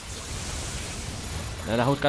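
A magic spell crackles and shimmers.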